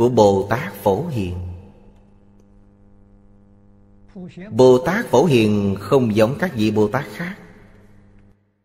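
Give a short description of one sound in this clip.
An elderly man speaks calmly and warmly into a close microphone.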